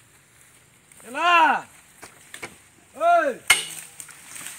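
A young elephant gives short high squealing calls.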